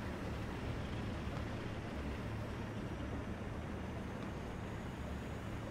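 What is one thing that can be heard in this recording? Tyres crunch through snow.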